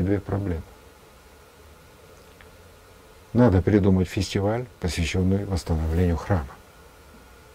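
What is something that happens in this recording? A middle-aged man speaks calmly and closely into a microphone.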